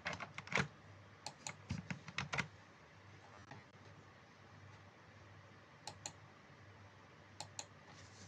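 Keys clack quickly on a keyboard.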